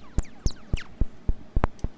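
A synthesizer makes short chirping sweeps that fall in pitch.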